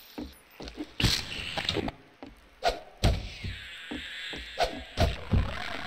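A crowbar strikes a creature with sharp thuds.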